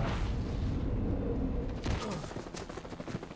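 A wooden fence cracks and breaks with a crash.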